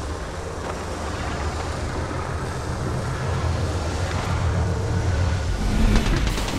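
A deep rumble slowly grows louder.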